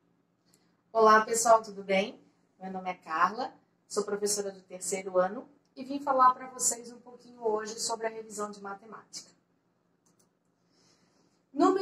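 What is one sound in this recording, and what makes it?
A woman speaks with animation, close to a microphone.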